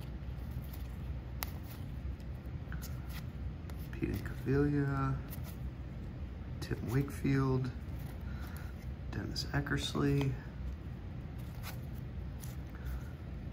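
Stiff trading cards rustle and slide as they are shuffled through by hand.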